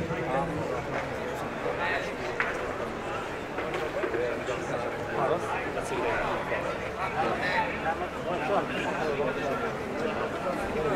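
A crowd of men murmurs and talks nearby, outdoors.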